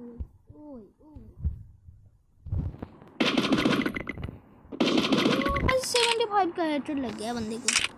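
A rifle fires a few quick shots.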